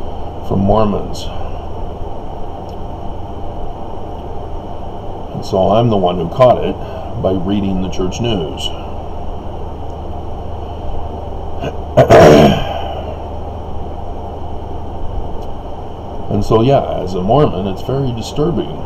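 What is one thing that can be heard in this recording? A middle-aged man speaks calmly and haltingly, close to a microphone.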